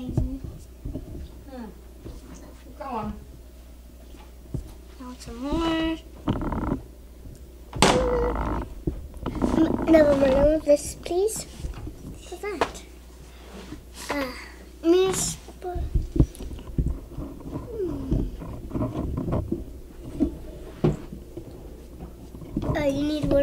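Young girls talk and chatter close by.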